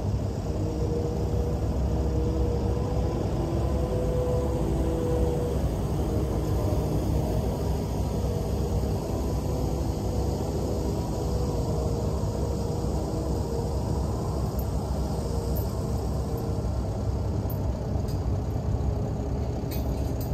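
A truck engine idles close by with a steady low rumble.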